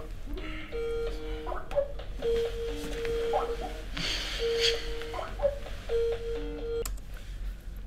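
An online call rings with a repeating electronic tone.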